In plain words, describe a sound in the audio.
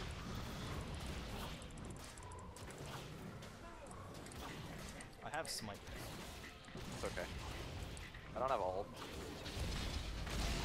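Game combat sounds of blows and spell effects clash repeatedly.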